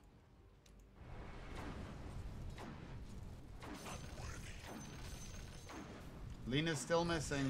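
Video game combat effects crackle and whoosh.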